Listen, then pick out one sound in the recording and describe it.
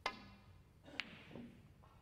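Snooker balls knock together with a sharp click.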